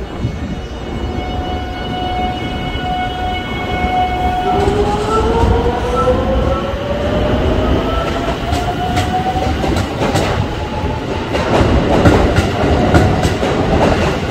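An electric train pulls away with a rising motor whine.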